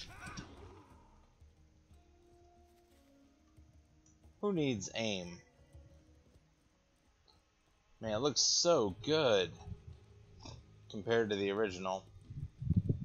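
A man talks into a microphone with animation, in short bursts.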